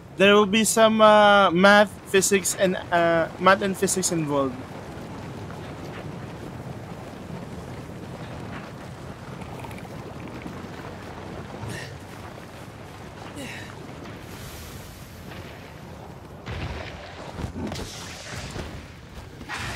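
Armoured footsteps run over rocky ground.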